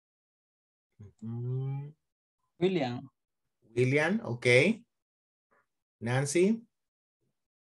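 A man speaks in short phrases over an online call.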